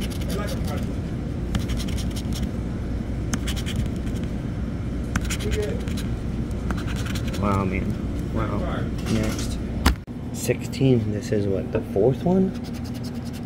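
A coin scratches rapidly across a card with a dry rasping sound.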